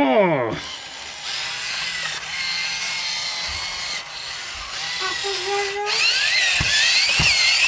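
A toy robot's motors whir as its legs move.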